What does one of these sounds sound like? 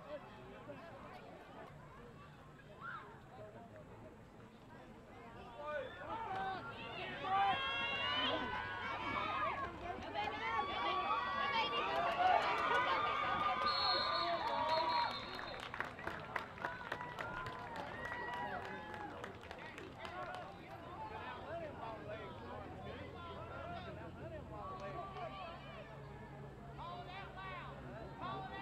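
A crowd of spectators cheers and shouts outdoors, swelling during the play.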